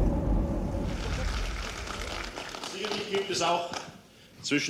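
A crowd murmurs and claps in a large hall.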